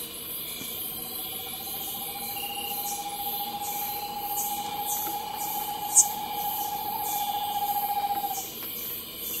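An owl gives a long, steady, rapid trilling call.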